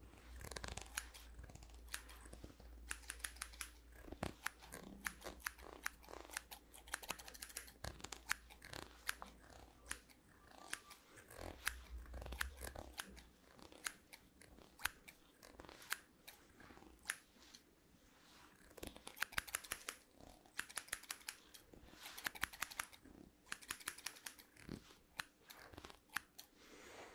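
Scissors snip rapidly close to a microphone.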